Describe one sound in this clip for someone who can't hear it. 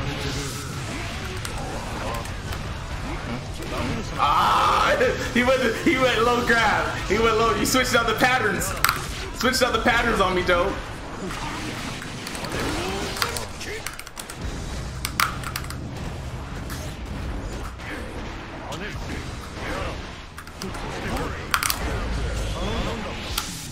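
Fighting game hits and blasts thump and crackle.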